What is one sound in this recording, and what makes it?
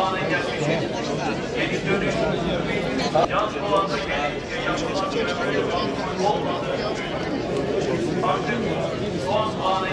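Middle-aged men talk with each other nearby.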